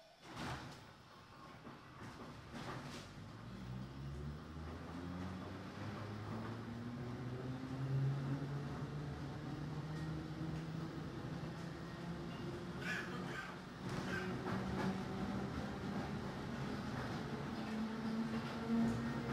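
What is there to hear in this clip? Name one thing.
A train's motor hums and whines, rising steadily in pitch as the train pulls away.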